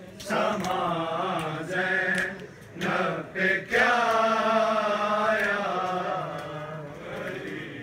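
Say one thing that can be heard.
A man chants a mournful song loudly through a loudspeaker.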